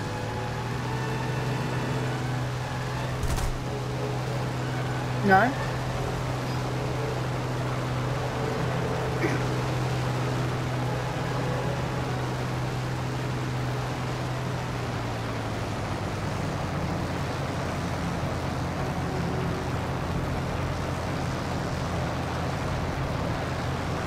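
Aircraft engines drone steadily and loudly.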